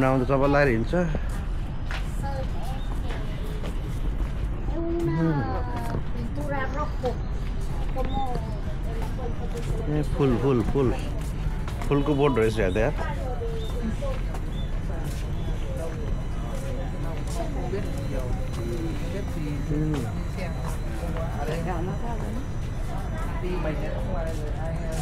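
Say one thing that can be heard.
Men and women talk nearby with animation, outdoors among a crowd.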